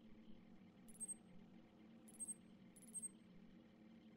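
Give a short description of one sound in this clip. Short electronic beeps sound softly.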